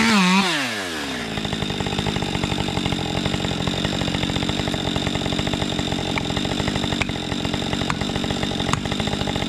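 A chainsaw idles with a fast, steady putter.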